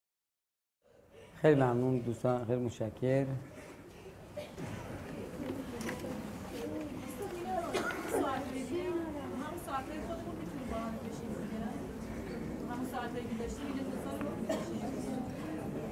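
A man lectures calmly into a microphone.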